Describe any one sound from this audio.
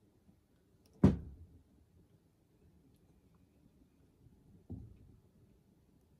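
A wooden board knocks against a table with a dull thud.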